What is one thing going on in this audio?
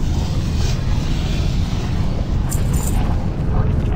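Magic spells crackle and strike in a fight.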